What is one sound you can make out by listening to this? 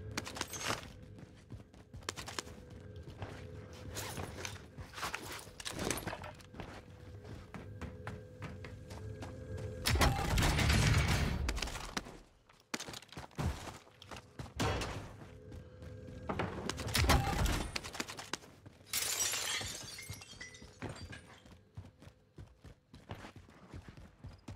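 Footsteps tap quickly on hard floors and metal stairs.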